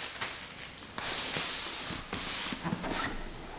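A cardboard box slides across a table.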